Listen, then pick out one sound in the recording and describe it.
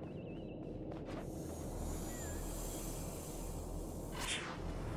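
A rushing whoosh bursts out as a figure dashes forward at speed.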